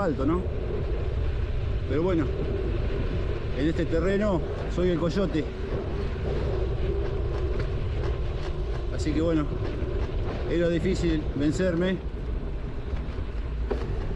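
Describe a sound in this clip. Tyres roll and crunch steadily over a dirt road.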